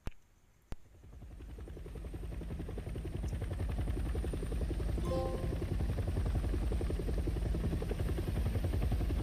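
A helicopter's rotor thumps and roars overhead, growing louder.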